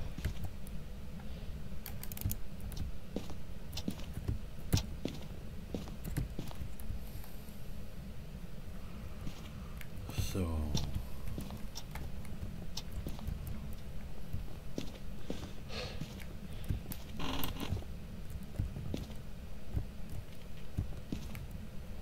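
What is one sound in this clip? A handheld meter crackles with irregular clicks.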